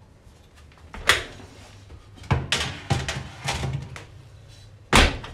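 A metal baking tray scrapes and clatters onto an oven rack.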